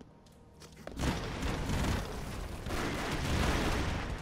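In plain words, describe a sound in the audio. Rapid gunshots crack and pop.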